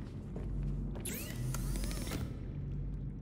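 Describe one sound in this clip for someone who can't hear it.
A machine opens with a shimmering electronic whir.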